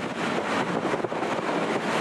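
A car passes by on the road.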